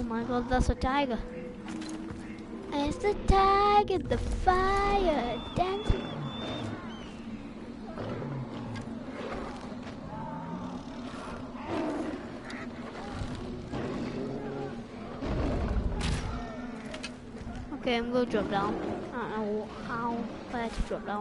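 A young boy talks with animation through a microphone.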